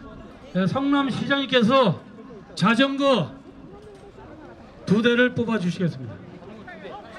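A man announces loudly over a loudspeaker outdoors, echoing.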